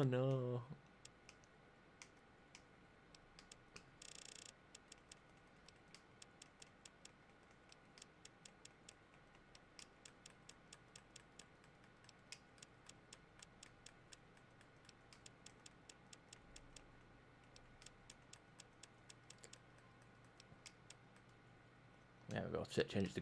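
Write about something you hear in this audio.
A game menu clicks in quick, soft ticks as settings change.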